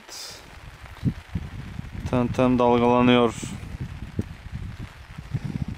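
Raindrops patter on a tarpaulin overhead.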